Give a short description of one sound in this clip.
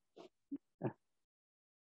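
A man laughs briefly over an online call.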